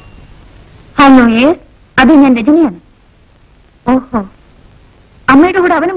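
A young woman speaks into a telephone with feeling, close by.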